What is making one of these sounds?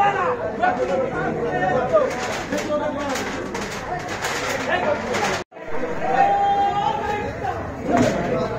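A crowd of men and women chatters loudly nearby.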